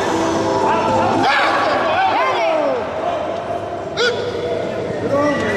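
A crowd of men and women shouts and cheers loudly in an echoing hall.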